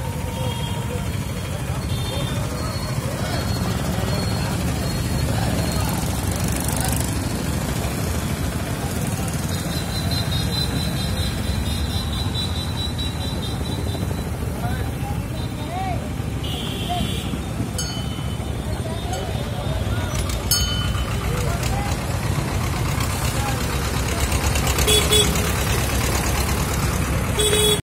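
Road traffic rumbles steadily nearby outdoors.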